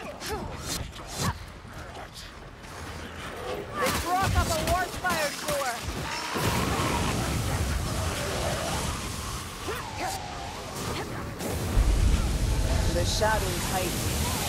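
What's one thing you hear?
Monsters screech and snarl close by.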